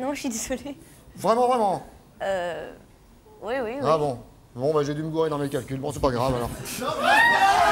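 A man speaks loudly and with animation into a microphone.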